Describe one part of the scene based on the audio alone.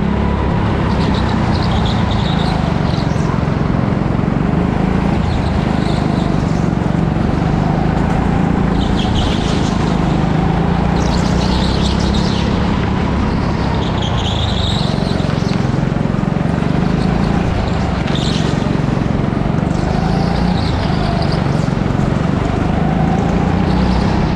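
A go-kart engine drones loudly and steadily up close, rising and falling as the kart speeds up and slows down.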